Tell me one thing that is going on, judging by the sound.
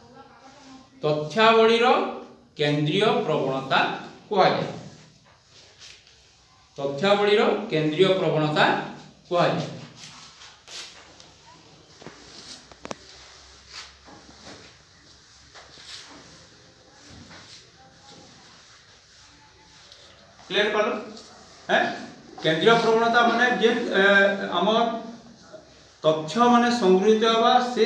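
A man speaks loudly and clearly, with some echo.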